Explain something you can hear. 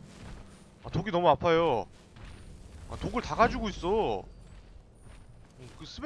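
A magic spell crackles and flares.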